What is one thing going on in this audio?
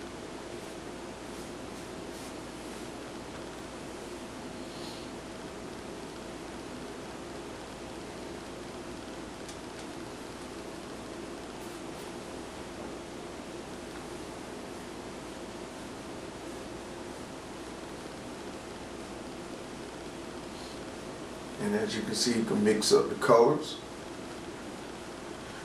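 A brush strokes softly on canvas.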